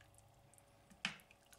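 A wooden spoon stirs a pot of soup.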